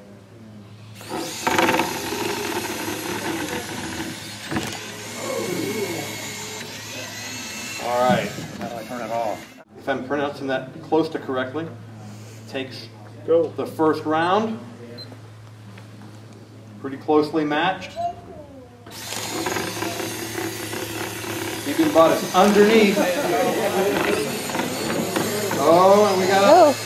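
Small robot motors whir as robots drive and push against each other.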